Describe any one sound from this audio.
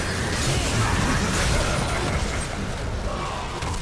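Magic spells crackle and burst in a noisy fight.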